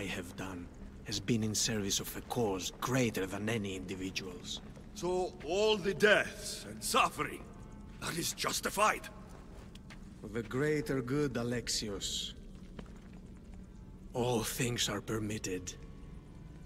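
An older man speaks slowly and gravely.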